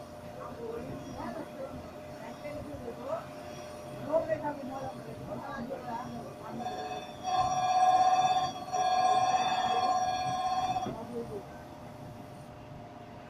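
A grinding wheel grinds against metal with a harsh whine.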